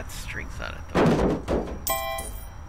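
A hollow wooden instrument drops into a metal skip with a loud thud.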